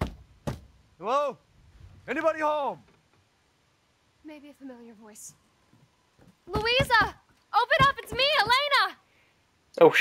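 A young woman calls out loudly through a door.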